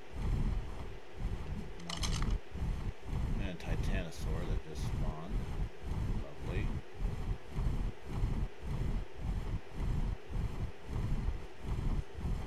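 Large wings beat with steady, heavy whooshing flaps.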